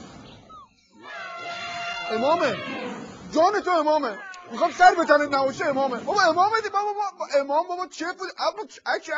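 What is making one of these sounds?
A man speaks with animation into a microphone, in a playful, theatrical voice.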